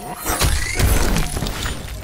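Water splashes under stomping feet.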